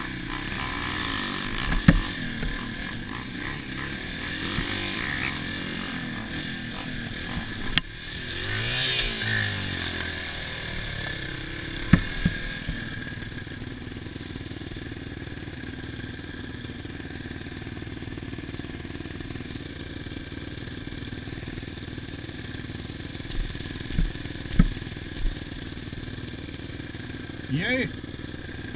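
A dirt bike engine runs close by, revving and then idling steadily.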